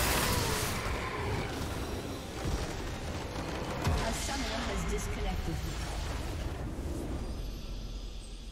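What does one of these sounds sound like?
Magic blasts and impacts crash loudly in a video game battle.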